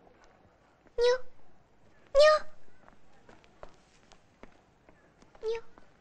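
A young girl calls out loudly and brightly nearby.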